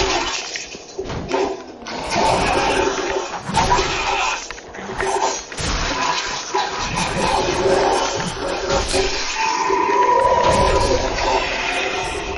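Metal swords clash and clang in a fight.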